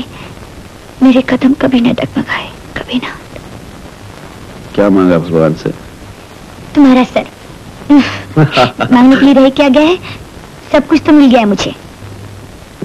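A man speaks warmly and cheerfully, close by.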